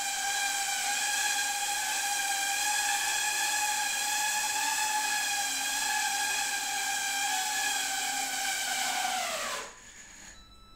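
A small drone's motors whine steadily at a high pitch, then wind down and stop.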